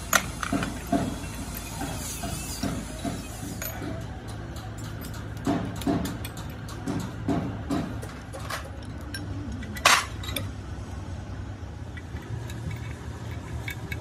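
Metal tools clink and knock against an engine.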